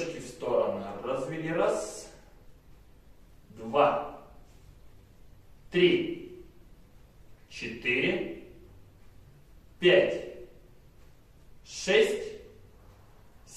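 A young man speaks calmly and clearly close by, in short phrases with pauses.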